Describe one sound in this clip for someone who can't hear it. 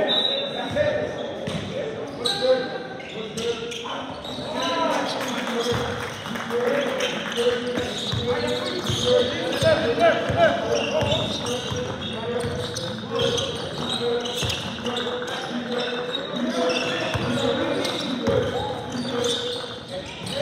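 Sneakers squeak sharply on a wooden floor in a large echoing hall.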